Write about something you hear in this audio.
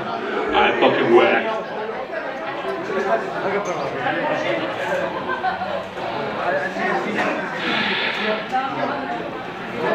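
A rock band plays loudly on stage.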